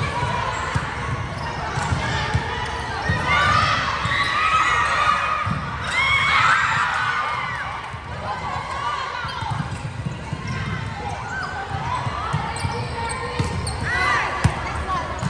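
A volleyball is struck with sharp slaps.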